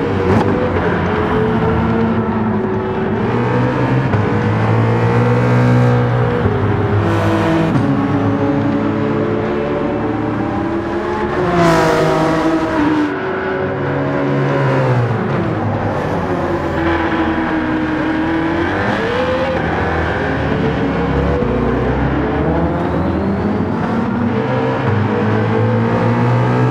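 Racing car engines roar and rev loudly, rising and falling in pitch as they shift gears.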